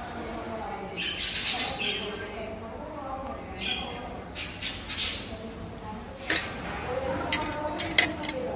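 Parrots squawk shrilly now and then.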